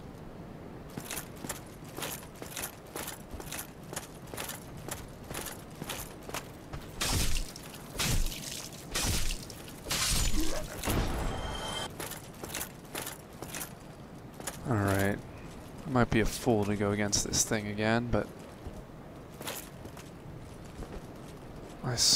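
Armoured footsteps clank rhythmically on stone.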